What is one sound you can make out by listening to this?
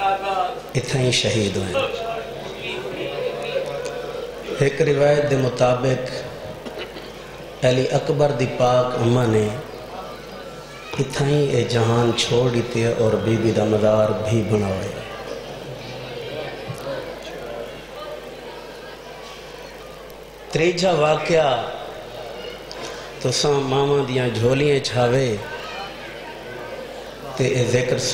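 A man speaks passionately into a microphone over a loudspeaker, in bursts with pauses.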